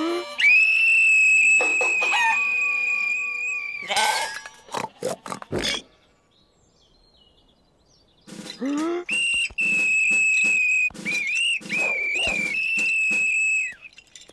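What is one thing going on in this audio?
A whistle blows loud, shrill blasts.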